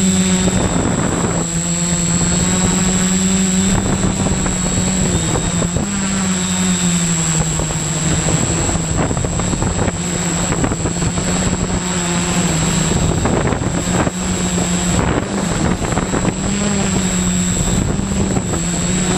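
Wind buffets the microphone outdoors.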